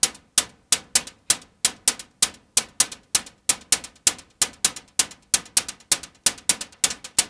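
A synthesizer plays a fast, steady rhythm of sharp percussive clicks that quickly die away.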